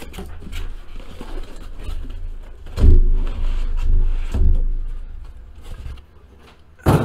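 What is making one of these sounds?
Cardboard rustles and thumps as a box is handled.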